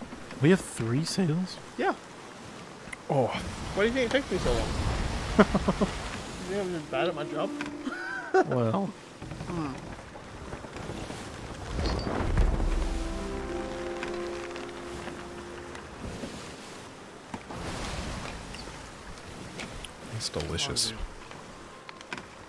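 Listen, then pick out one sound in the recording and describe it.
Ocean waves surge and crash around a boat.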